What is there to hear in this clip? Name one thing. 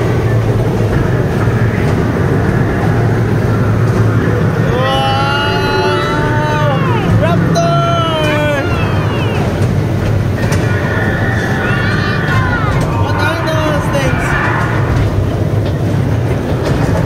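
A ride rumbles and hums steadily throughout.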